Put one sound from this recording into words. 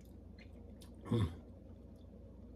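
A man slurps soup from a spoon.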